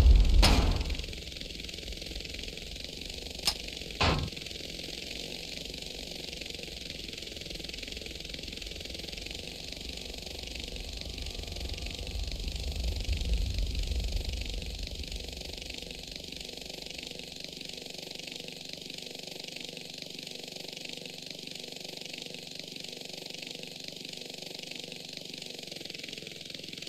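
A helicopter's rotor whirs steadily as it flies.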